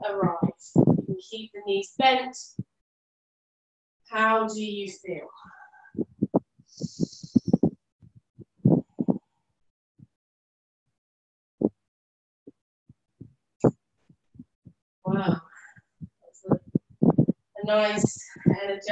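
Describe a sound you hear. A woman speaks calmly and slowly, close to a microphone, with pauses.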